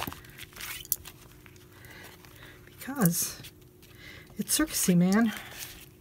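Paper sheets rustle and flap as they are lifted and turned over.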